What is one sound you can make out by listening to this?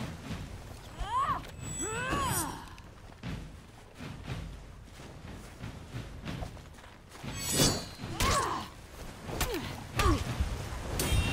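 Warriors grunt and shout as they fight.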